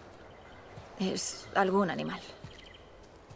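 A teenage girl answers hesitantly nearby.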